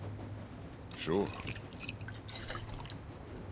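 A man answers briefly and calmly.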